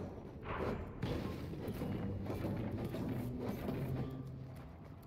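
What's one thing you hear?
A pickaxe strikes a wall with sharp knocks.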